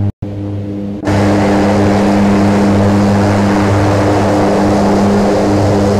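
A propeller aircraft's engine hums loudly with rushing wind outside.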